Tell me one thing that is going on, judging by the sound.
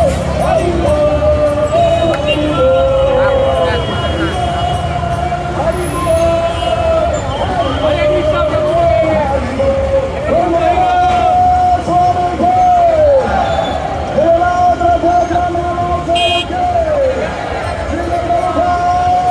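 A large crowd sings a chant together outdoors.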